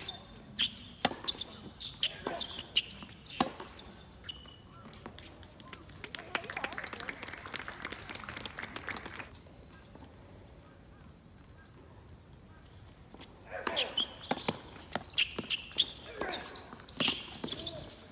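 Tennis rackets strike a ball back and forth outdoors.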